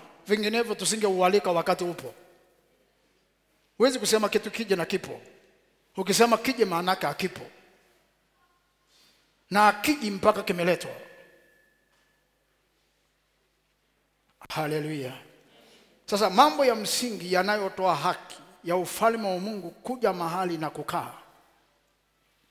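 A man preaches with animation into a headset microphone, in bursts with pauses, in an echoing hall.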